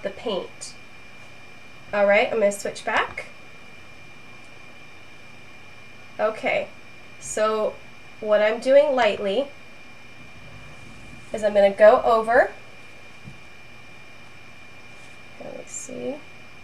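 A young woman talks calmly and close to a microphone, in short phrases with pauses.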